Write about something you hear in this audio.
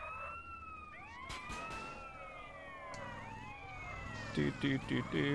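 A police siren wails and rises and falls in pitch.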